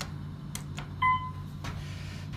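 An elevator chime dings once.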